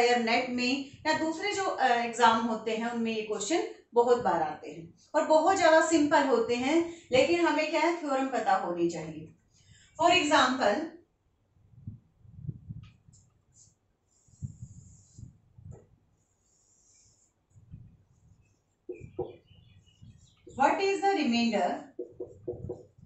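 A woman speaks clearly and calmly into a nearby microphone.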